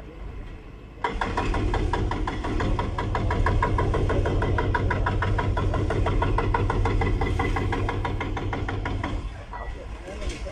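An excavator's arm knocks and scrapes against concrete.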